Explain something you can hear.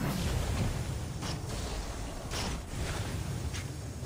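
Fireballs whoosh past.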